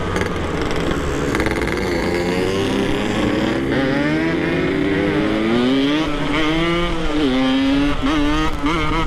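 A motorcycle engine hums and revs up close while riding.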